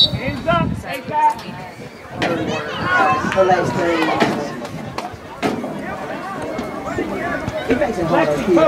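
Young women shout and call out across an open outdoor field.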